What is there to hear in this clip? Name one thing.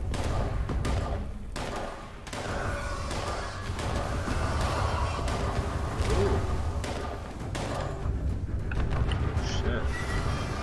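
A young man talks into a close microphone with animation.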